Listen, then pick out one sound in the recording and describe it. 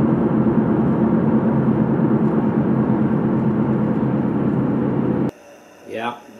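A car's engine and tyres rumble steadily on the road.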